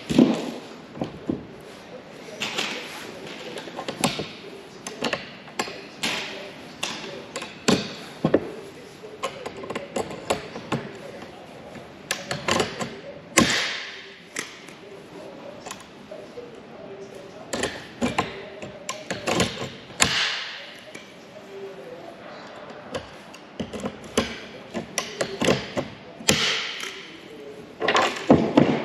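Metal parts clink and tap against each other.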